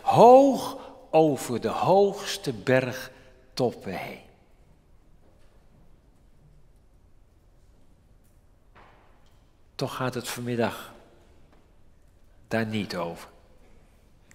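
An elderly man speaks with emphasis through a microphone, pausing between phrases.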